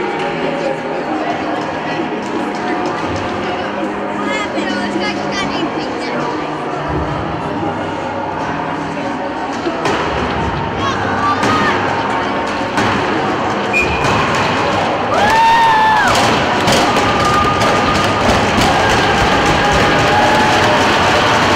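A crowd chatters in a large echoing arena.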